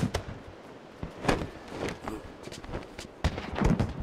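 Footsteps tread on stone.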